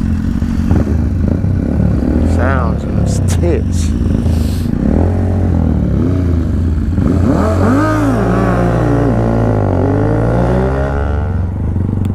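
Another motorcycle revs its engine nearby.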